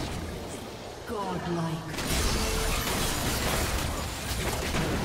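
Game spell effects burst and crackle in a fight.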